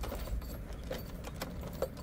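Keys jingle and turn in a door lock.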